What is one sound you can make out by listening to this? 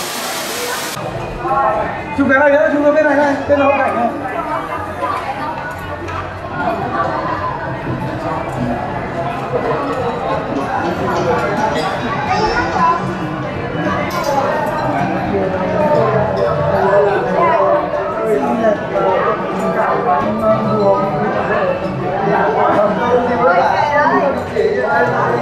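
Many adults chat at once in a busy indoor crowd.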